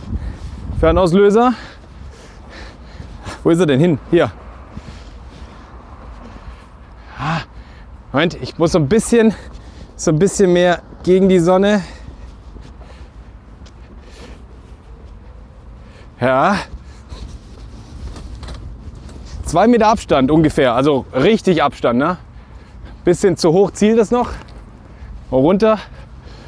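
A man talks calmly and clearly, close to a microphone, in short bursts with pauses.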